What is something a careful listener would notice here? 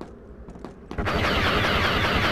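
A laser blaster fires in a rapid, loud burst.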